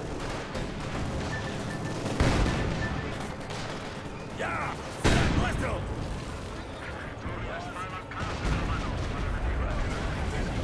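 Gunfire crackles steadily.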